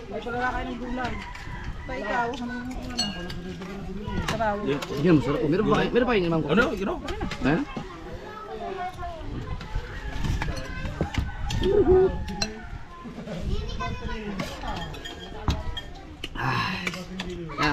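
Several men talk casually close by, outdoors.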